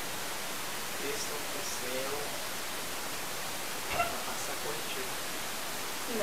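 A young man speaks softly close by.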